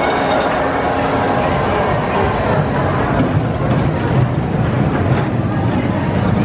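Riders on a roller coaster scream and cheer.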